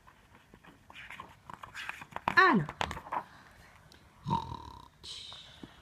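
A page of a book turns with a soft paper rustle.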